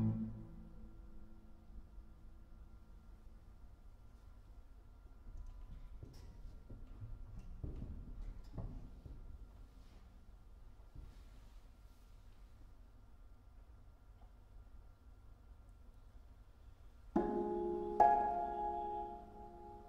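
A harp plays soft plucked notes that ring out in a large echoing hall.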